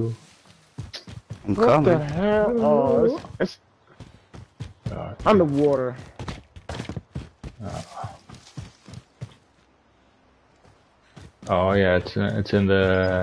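Footsteps patter over grass.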